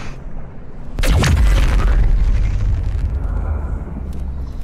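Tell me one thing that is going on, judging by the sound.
A loud energy blast bursts with a deep rumble.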